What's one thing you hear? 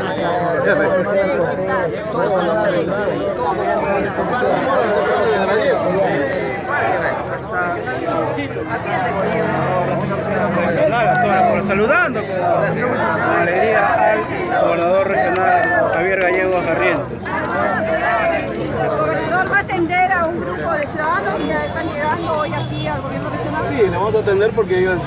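A crowd of people chatter outdoors all around.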